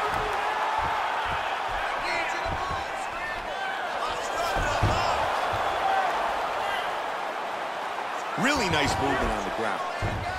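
A crowd cheers and murmurs steadily in a large arena.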